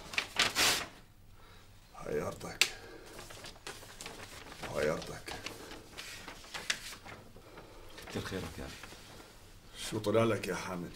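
Paper sheets rustle and crackle.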